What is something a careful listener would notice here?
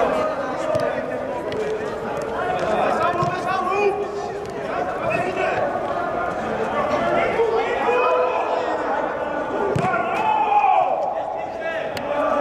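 A football is kicked with dull thuds in an echoing indoor hall.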